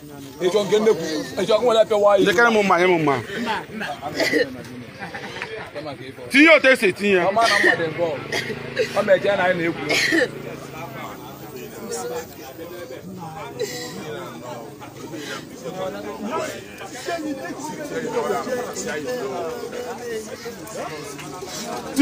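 A man speaks loudly and with agitation close by.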